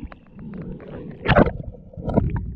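Water splashes and laps at the surface.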